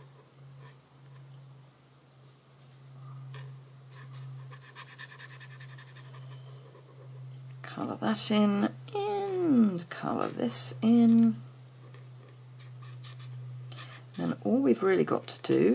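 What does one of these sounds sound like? A felt-tip marker scratches softly on paper.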